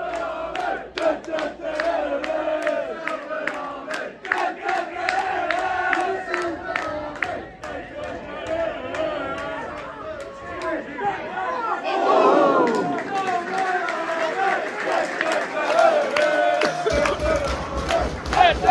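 A crowd of football fans sings and chants loudly nearby, outdoors.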